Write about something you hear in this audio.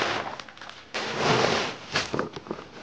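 Leafy branches rustle as they are dumped.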